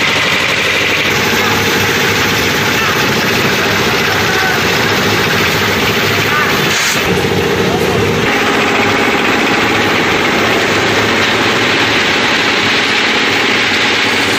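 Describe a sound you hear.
A crowd of men talk at once outdoors.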